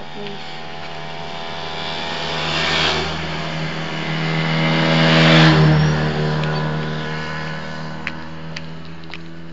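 A motorcycle approaches, roars past and fades into the distance.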